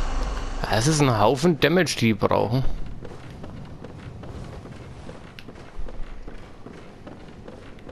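Footsteps tap on a hard stone floor.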